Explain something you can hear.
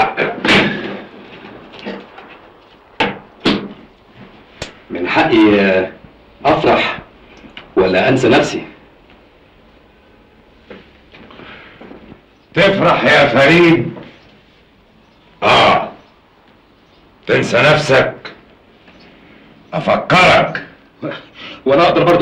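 Two men talk calmly, close by.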